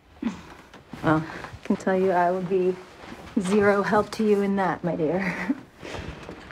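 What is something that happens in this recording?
Another young woman answers softly and calmly.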